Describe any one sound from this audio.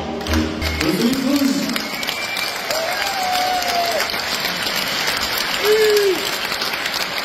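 Audience members cheer and whistle.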